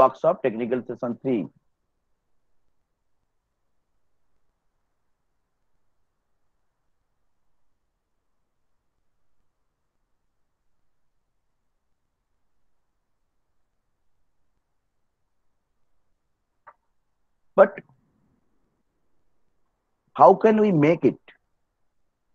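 A young man speaks calmly through an online call, in short bursts.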